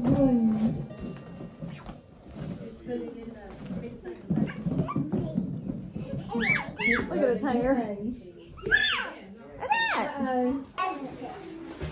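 Young children squeal and shout excitedly nearby.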